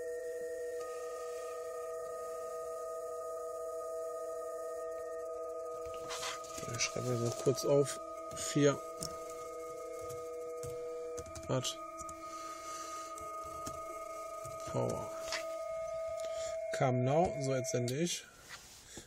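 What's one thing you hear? Several steady electronic tones hum from a nearby laptop speaker.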